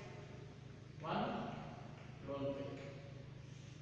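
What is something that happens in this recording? A middle-aged man speaks nearby, explaining.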